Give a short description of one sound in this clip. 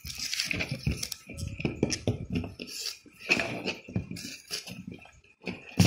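A hand shuffles and bumps vegetables together on a hard surface.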